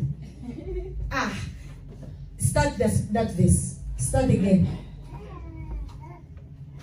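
A woman speaks with animation through a microphone and loudspeakers.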